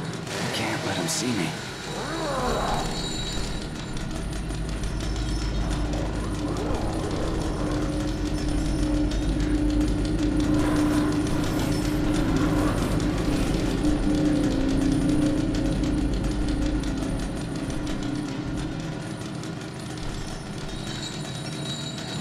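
Soft footsteps creep slowly across a gritty floor.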